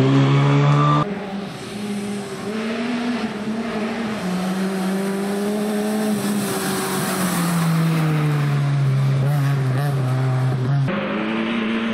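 A second rally car speeds along a gravel road at full throttle.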